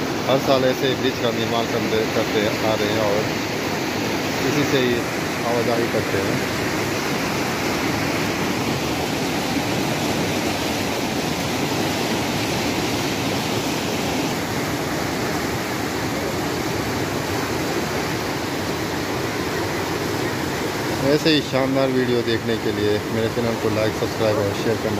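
A river rushes over rocks outdoors.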